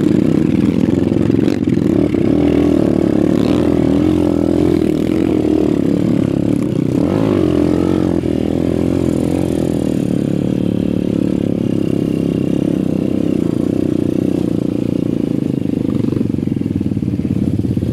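A dirt bike engine putters and revs loudly up close.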